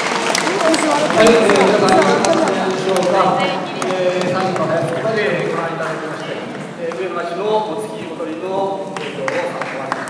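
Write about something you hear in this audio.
A group of men and women chant loudly together.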